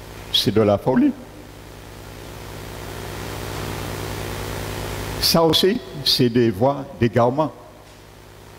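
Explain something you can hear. A middle-aged man speaks calmly through a headset microphone and loudspeakers.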